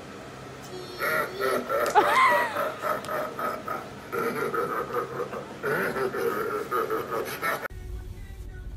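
A young boy shouts excitedly.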